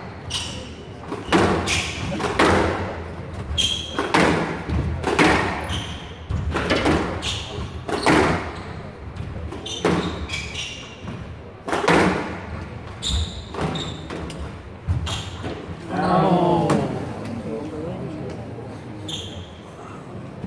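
Shoes squeak sharply on a wooden court floor.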